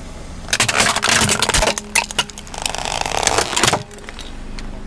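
A plastic toy cracks under a car tyre.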